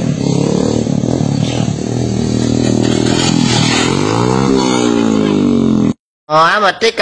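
A motorcycle engine revs and whines.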